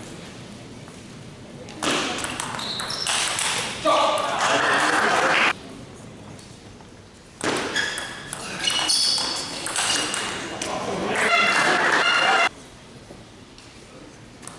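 A table tennis ball clicks back and forth across a table in an echoing hall.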